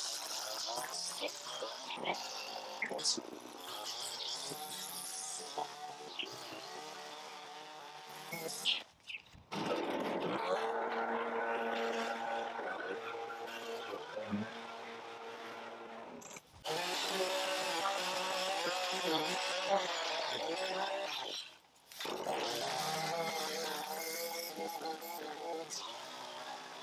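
A petrol string trimmer buzzes loudly as it cuts grass.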